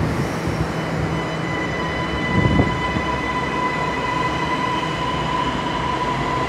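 A train's motors whine, rising in pitch as it speeds up.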